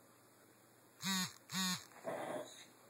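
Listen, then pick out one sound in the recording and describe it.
A squeaky rubber toy squeaks twice sharply.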